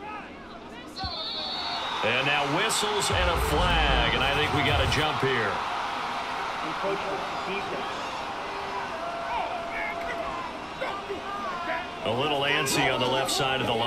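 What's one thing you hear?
A large crowd roars and cheers.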